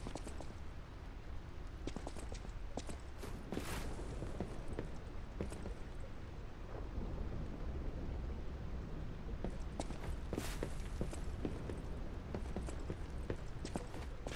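Footsteps thud on stone and wooden planks.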